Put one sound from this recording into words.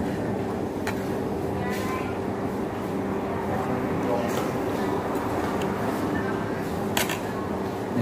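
Metal cutlery clinks against a plate.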